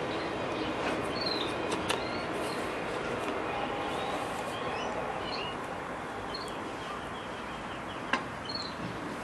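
A hand taps and shifts a bicycle saddle with small knocks.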